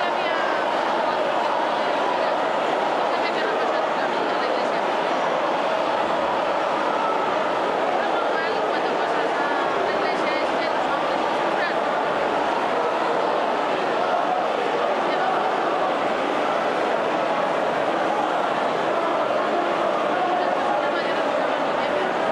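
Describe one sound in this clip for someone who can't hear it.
A large crowd of men shouts and chants loudly close by.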